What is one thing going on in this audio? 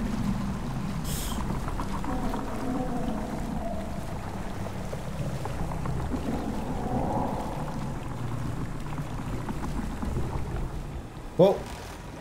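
A man talks quietly into a microphone, heard up close.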